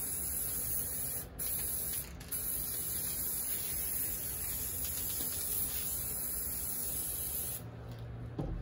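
An aerosol spray can hisses in bursts.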